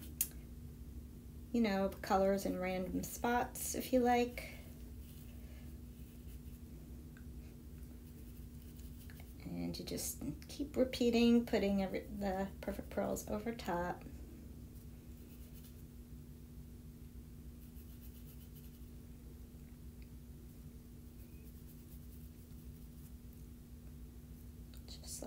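A brush dabs and brushes softly on paper.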